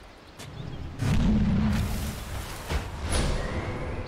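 Magic blasts and weapon strikes crackle and thud in a battle.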